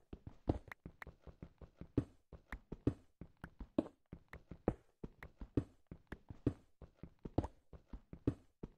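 A pickaxe strikes and breaks stone blocks in a quick, steady rhythm.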